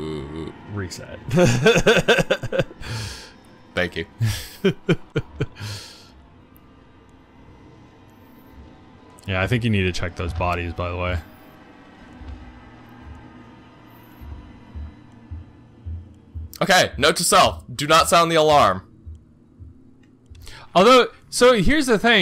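A second man answers with animation into a close microphone.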